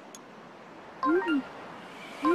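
A golf club swishes and strikes a ball.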